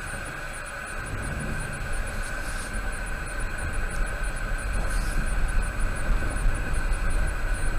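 A car engine rumbles louder as the car pulls away and picks up speed.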